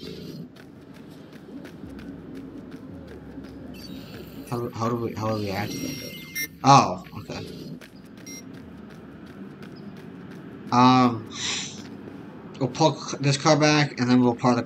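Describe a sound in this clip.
Footsteps run quickly over gravel and dirt.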